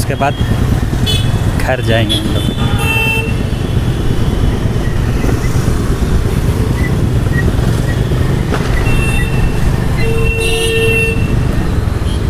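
Vehicle horns honk now and then.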